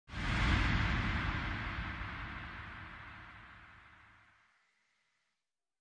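A giant creature lets out a deep, thunderous roar that slowly fades.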